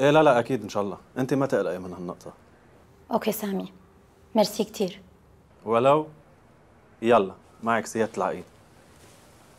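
A man speaks calmly on a phone, close by.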